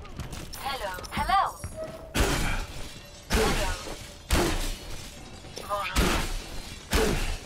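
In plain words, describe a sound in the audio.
Revolver shots fire in loud, sharp bursts.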